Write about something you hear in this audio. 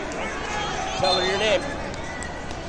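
A man cheers loudly nearby.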